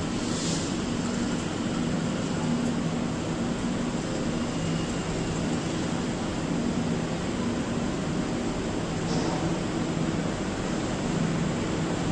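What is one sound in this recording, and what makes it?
A train rolls slowly along the tracks.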